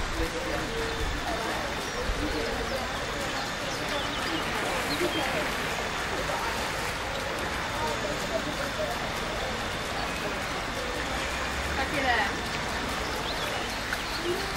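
Water splashes gently as animals swim in a pool.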